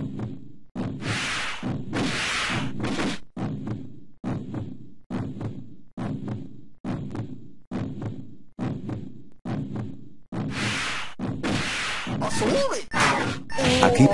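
Game sound effects of sword slashes and hits ring out sharply.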